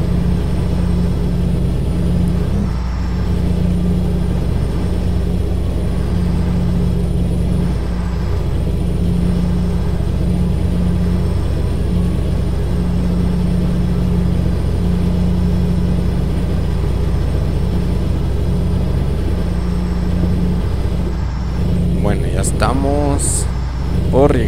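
A heavy engine rumbles steadily at a low pitch.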